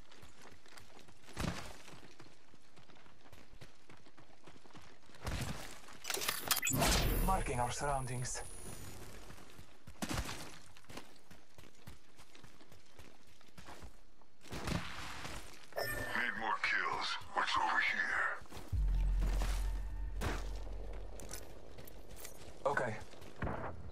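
Footsteps run quickly over dirt and rock.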